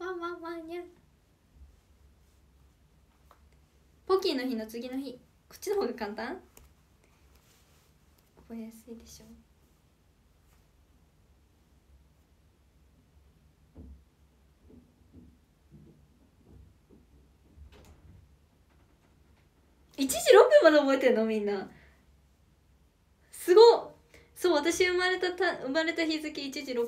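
A young woman speaks softly and cheerfully, close to a microphone.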